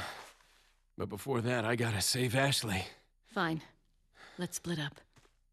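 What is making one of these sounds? A man speaks in a low, calm voice, close by.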